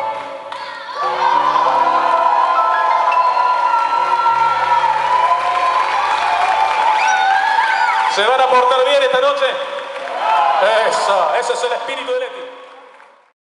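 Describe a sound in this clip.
A man sings long held notes into a microphone.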